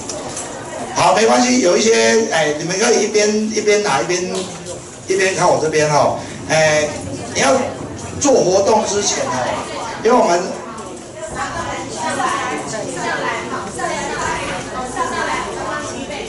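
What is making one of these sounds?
A man speaks loudly and with animation through a microphone in a large echoing hall.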